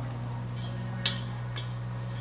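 A metal bowl is set down with a light knock.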